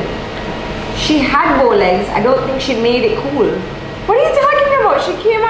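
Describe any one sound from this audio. A second young woman answers with animation close by.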